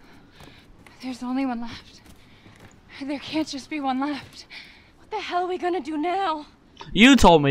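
A young woman speaks anxiously nearby.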